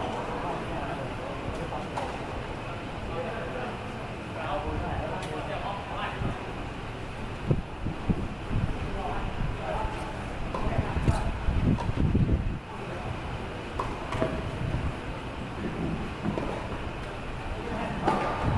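Tennis balls are struck with rackets, with sharp pops echoing in a large open space.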